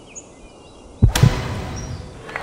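A golf club strikes a ball with a sharp whack.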